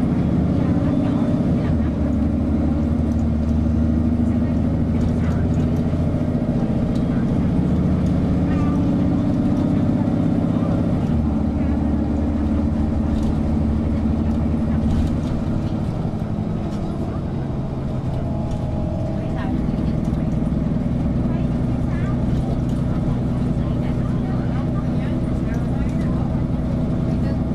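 A bus engine hums steadily while the bus drives along.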